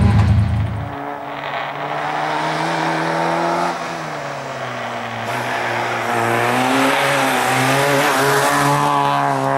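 A rally car engine approaches, whines loudly and passes close by.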